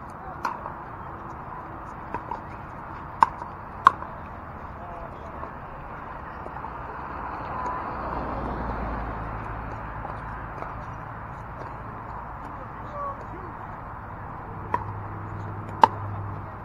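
Paddles hit a plastic ball with sharp pops, now and then.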